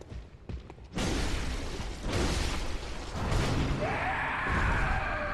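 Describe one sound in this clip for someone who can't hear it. A blade slashes into flesh with a wet thud.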